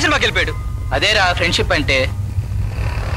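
A man speaks with animation up close.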